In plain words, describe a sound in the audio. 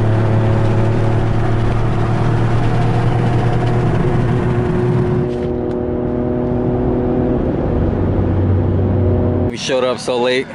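A car engine drones steadily while driving.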